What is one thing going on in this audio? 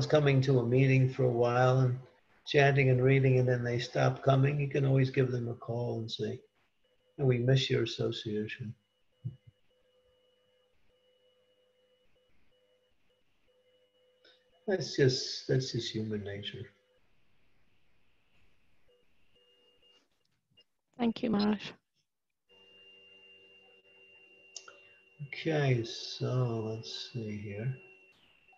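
An elderly man speaks calmly through an online call, pausing often.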